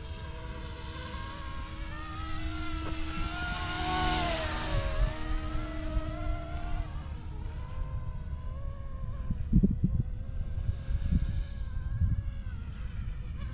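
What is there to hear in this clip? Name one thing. A small model plane engine whines overhead, rising then falling in pitch as it passes and fades away.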